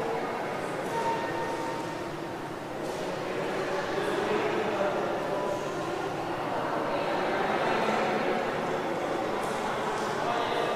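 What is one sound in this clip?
A crowd of men and women chatters at a distance in a large echoing hall.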